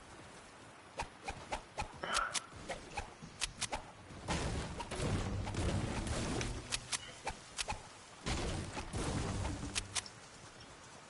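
A pickaxe chops into a tree trunk with repeated thuds.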